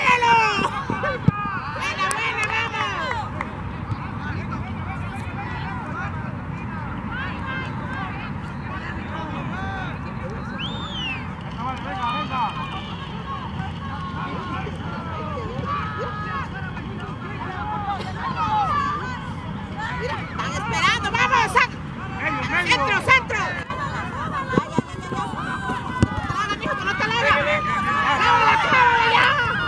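Young players shout and call out across an open field outdoors.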